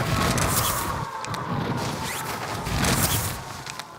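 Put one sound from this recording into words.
A parachute snaps open with a flap.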